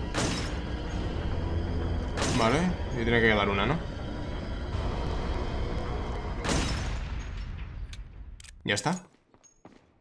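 Gunshots ring out loudly with echoing rumble.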